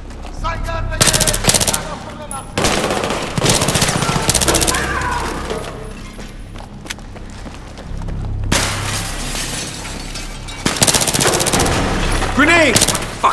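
Rapid rifle fire bursts out in short, loud volleys.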